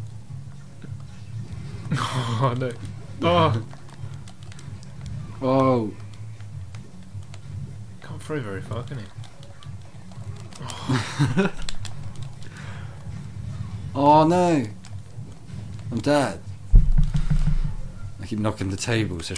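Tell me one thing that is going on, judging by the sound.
Upbeat game music plays steadily with a low pulsing beat.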